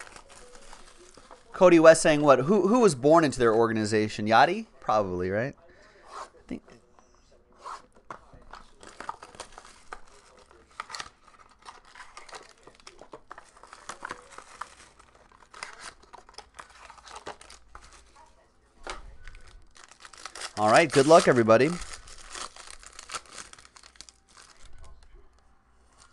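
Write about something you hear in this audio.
Plastic wrap crinkles and rustles as hands tear it open.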